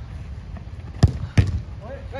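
A football thumps as players kick it.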